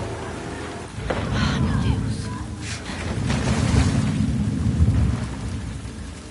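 Water splashes loudly as a person jumps out of a boat.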